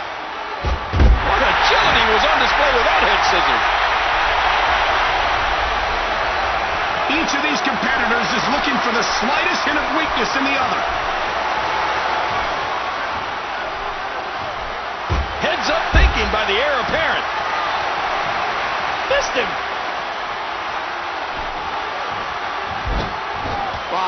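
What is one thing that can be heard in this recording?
Bodies slam hard onto a wrestling ring mat.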